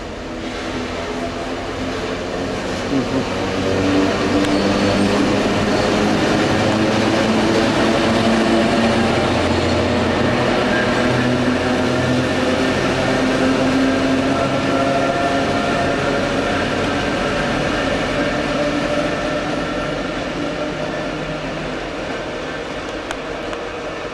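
Steel wheels rumble and squeal on the rails.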